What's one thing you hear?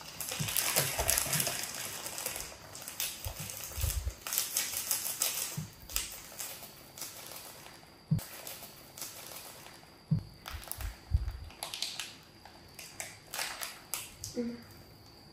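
A plastic snack bag crinkles and rustles close by.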